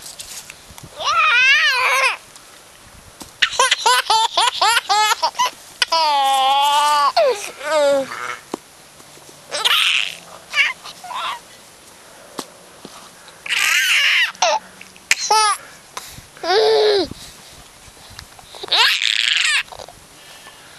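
A baby squeals and babbles excitedly close by.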